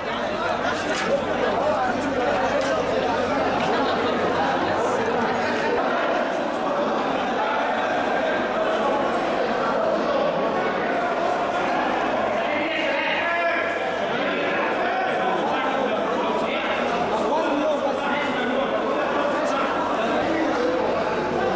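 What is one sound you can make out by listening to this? A crowd of men talk loudly nearby, echoing in a large empty hall.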